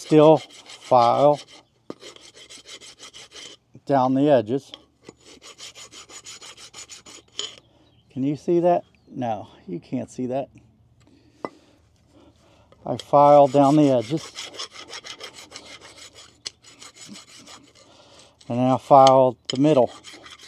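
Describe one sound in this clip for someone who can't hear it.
A metal tool scrapes and taps against a metal part.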